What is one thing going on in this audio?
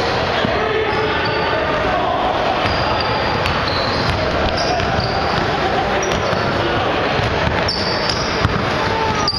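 Players' footsteps thud as they run up and down the court.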